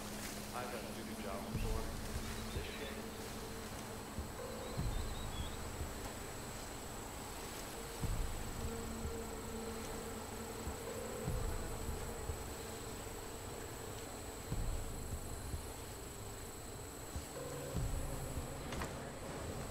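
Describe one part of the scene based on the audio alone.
Footsteps rustle slowly through tall grass.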